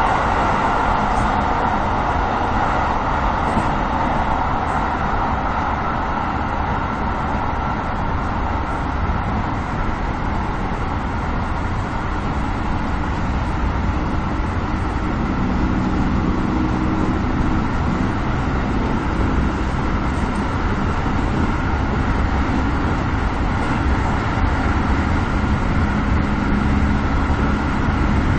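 A train rumbles steadily along the tracks, heard from inside the cab.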